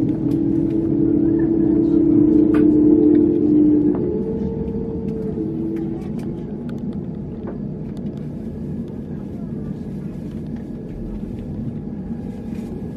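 An airliner cabin hums with a low drone while parked at the gate.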